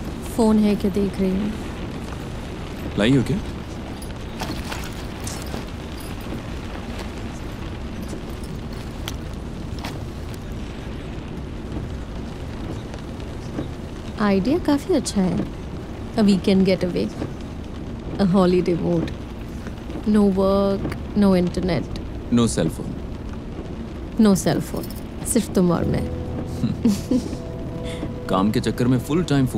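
A woman sings softly nearby.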